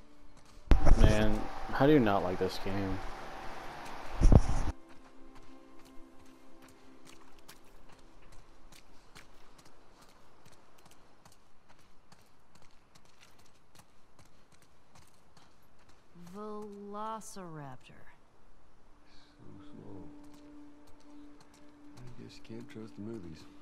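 A young woman's footsteps fall steadily on hard ground.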